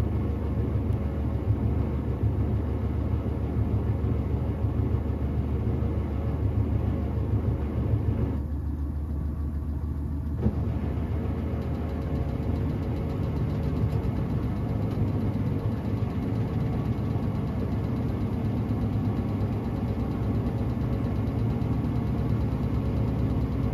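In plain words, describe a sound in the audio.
A washing machine drum turns with a steady low hum and rumble.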